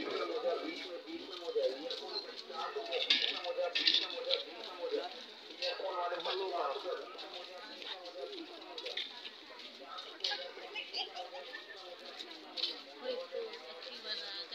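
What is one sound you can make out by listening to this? A crowd of men and women chatter and call out close by.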